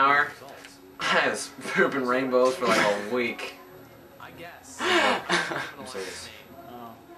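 A teenage boy laughs loudly close by.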